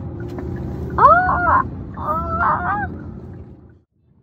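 A young girl exclaims in a high, surprised voice.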